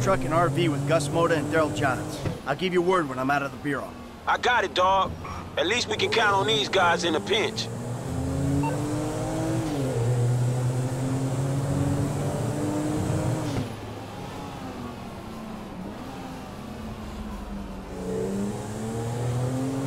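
A car engine accelerates through the gears.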